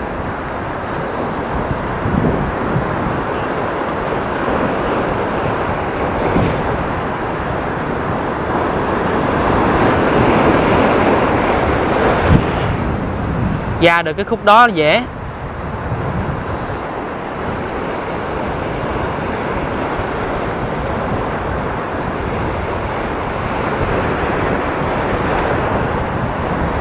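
Waves crash and churn on the shore, outdoors in wind.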